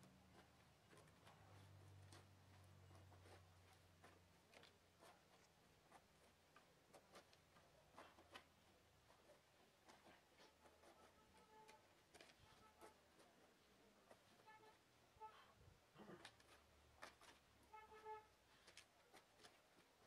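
A shovel scrapes and digs into soft soil.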